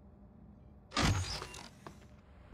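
A sliding door whooshes open.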